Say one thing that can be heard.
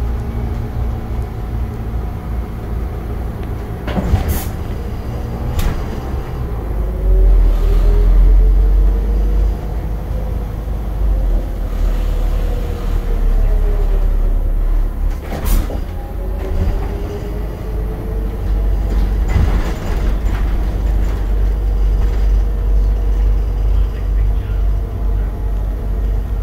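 A low rumble fills a city bus cabin as it rolls over the road.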